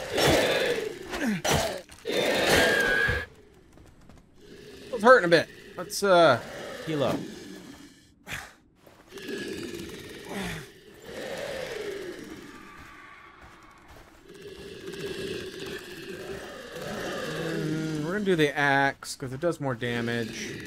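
Magic spells zap and whoosh during a fight.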